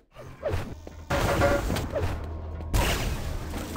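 An energy gun crackles with a buzzing hum.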